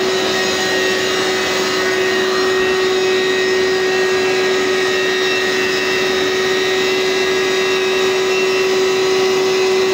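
An upright vacuum cleaner runs with a steady loud whine and roar close by.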